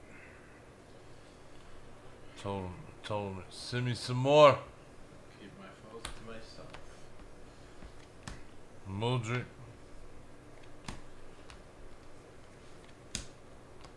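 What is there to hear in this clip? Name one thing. Trading cards rustle and slide as they are flipped through.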